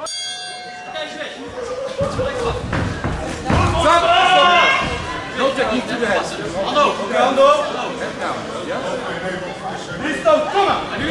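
A crowd shouts and cheers loudly.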